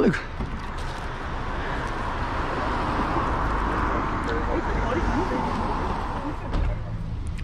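A car passes by on the road.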